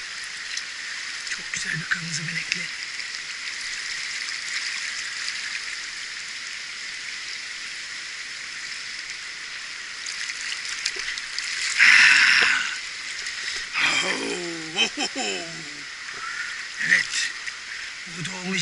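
A stream flows and babbles steadily close by.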